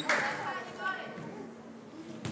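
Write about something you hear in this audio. Young women call out to each other in an echoing gym.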